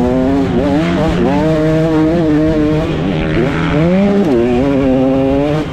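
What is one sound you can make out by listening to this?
Wind rushes past the rider.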